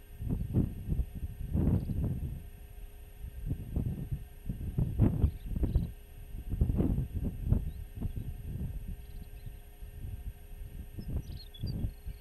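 Wind buffets the microphone in strong, uneven gusts outdoors.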